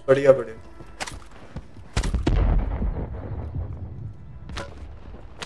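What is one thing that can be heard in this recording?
Gunshots crack, followed by a low booming rumble.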